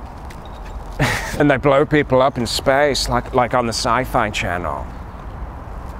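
A young man speaks with animation close by, outdoors.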